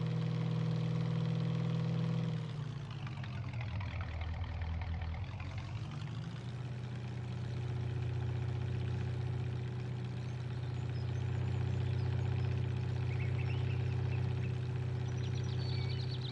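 A truck engine hums steadily, dropping in pitch as the truck slows and then rising again.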